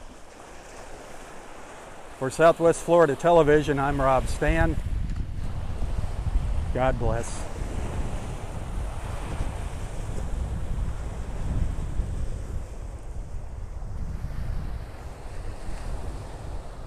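Small waves break and wash gently onto a beach.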